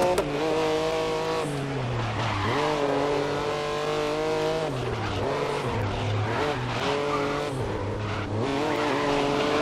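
A racing prototype car's engine blips down through the gears under braking.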